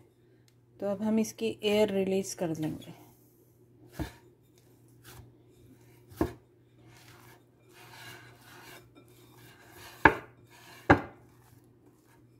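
Hands knead and squash soft dough.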